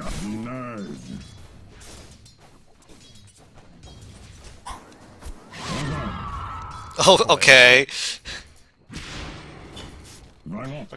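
Fantasy battle sound effects clash and crackle.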